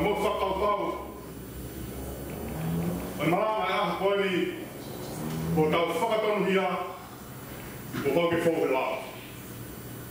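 A man speaks calmly into a microphone in an echoing hall, with pauses.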